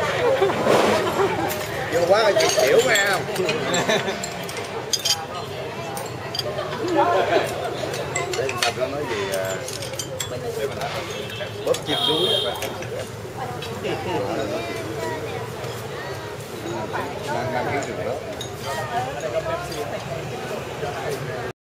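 A crowd of men and women chatter around nearby tables.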